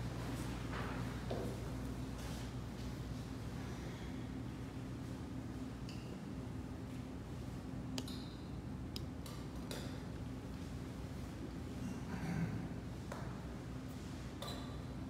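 A man speaks quietly in an echoing hall.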